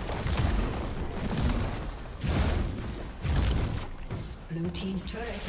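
Game combat effects clash and thump.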